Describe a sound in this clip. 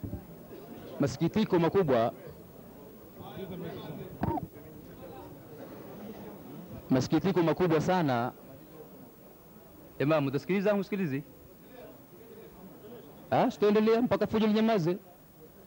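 A man speaks loudly into a microphone over a loudspeaker, in short echoing bursts.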